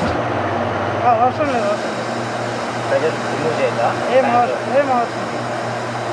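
A man speaks nearby.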